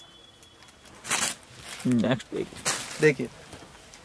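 Silk fabric rustles as it is unfolded and handled.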